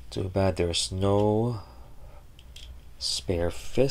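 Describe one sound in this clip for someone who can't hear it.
Small plastic joints of a toy figure click as the figure is posed by hand.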